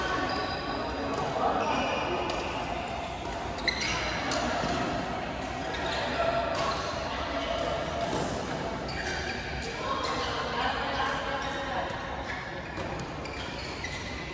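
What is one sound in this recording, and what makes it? Shuttlecocks pop off rackets in a large echoing hall.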